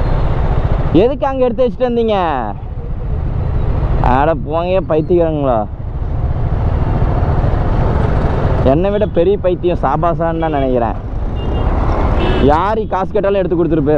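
A motorcycle engine revs up and down in short bursts.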